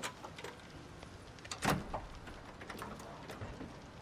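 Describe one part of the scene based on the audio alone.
A car hood creaks open.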